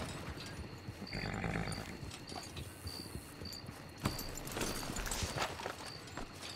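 A horse's hooves thud on soft ground.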